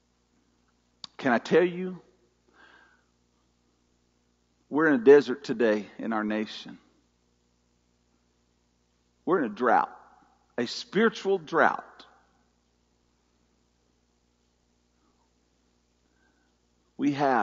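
An older man speaks calmly through a microphone in bursts with long pauses, his voice ringing slightly in a large room.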